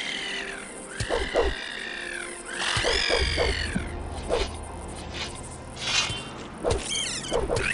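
A sword swings and strikes with sharp thuds.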